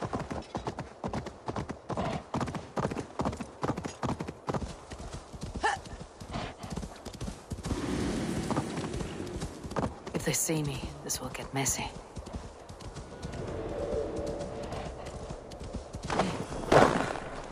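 Hooves gallop quickly over snow and ground.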